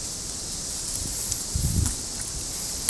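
Leafy branches rustle and brush together.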